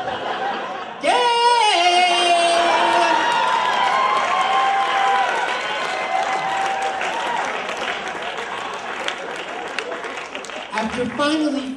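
An audience cheers and laughs loudly.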